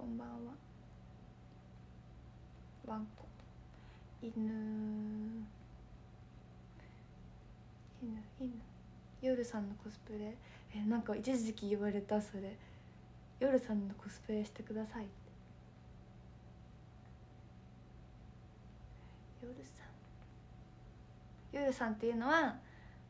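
A young woman talks animatedly and close up, in short bursts with pauses.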